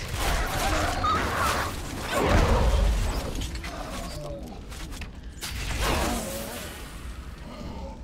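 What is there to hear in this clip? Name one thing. Magic blasts and weapon blows crash loudly in a fight.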